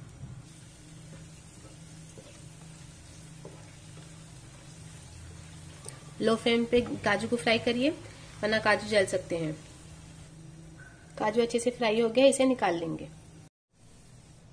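Oil sizzles softly as nuts fry in a pan.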